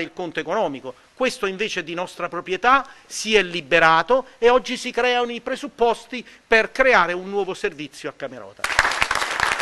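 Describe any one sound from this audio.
An elderly man speaks loudly and with animation close by.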